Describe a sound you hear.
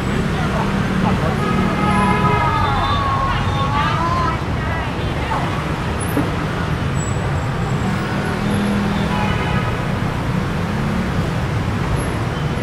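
Traffic rumbles steadily along a busy street.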